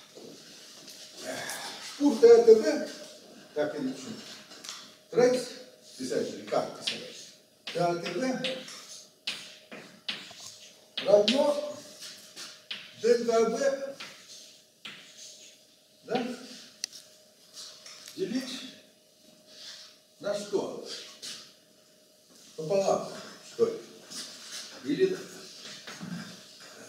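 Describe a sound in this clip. An elderly man lectures calmly in a room with a slight echo.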